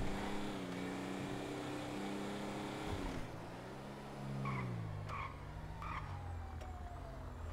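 A car engine hums and drops in pitch as the car slows down.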